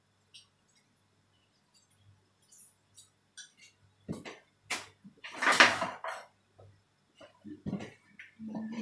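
Utensils clink and scrape against a bowl.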